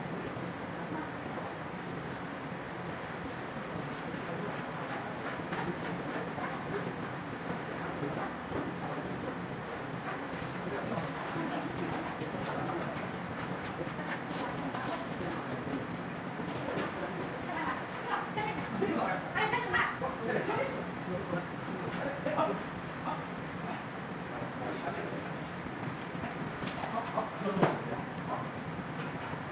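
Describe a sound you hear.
Tent fabric rustles and drags across the floor.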